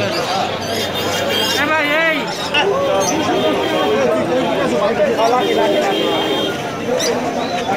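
A parrot squawks nearby.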